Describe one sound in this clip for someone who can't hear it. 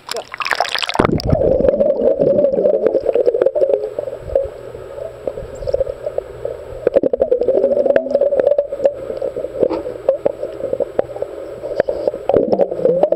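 Muffled underwater rumbling and bubbling fills the sound.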